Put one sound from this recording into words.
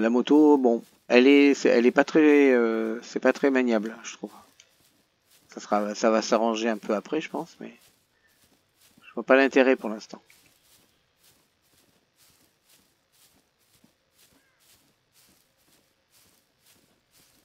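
Footsteps swish steadily through grass.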